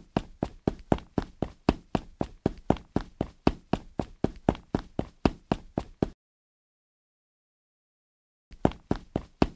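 Quick footsteps patter in a steady, even rhythm.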